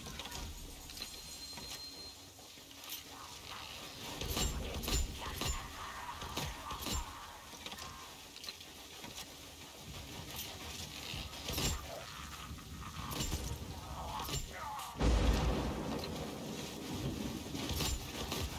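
Crossbow bolts fire with sharp snaps.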